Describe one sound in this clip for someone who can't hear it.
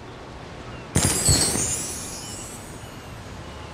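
A sparkling game fanfare bursts as a new rank pops up.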